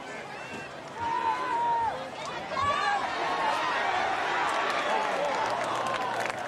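A crowd cheers and shouts loudly as the play runs.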